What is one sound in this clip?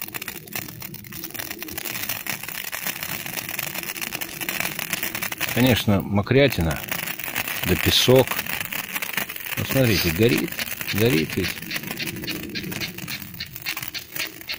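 A lighter flame hisses softly and steadily.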